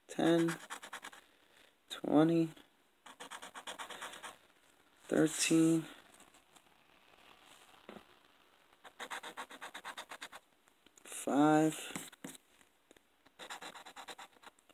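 A coin scratches rapidly across a card in short bursts.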